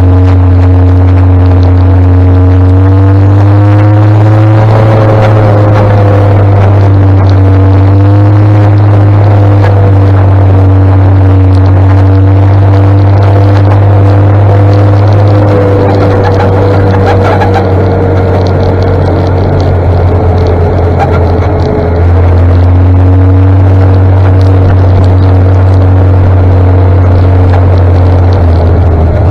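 A motorbike engine hums steadily close by, rising and falling slightly in pitch.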